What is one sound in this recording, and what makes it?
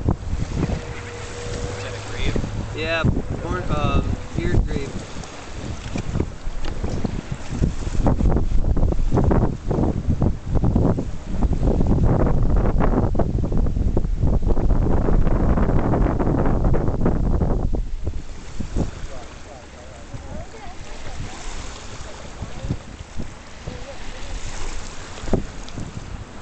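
A flock of shorebirds calls with sharp yapping cries nearby.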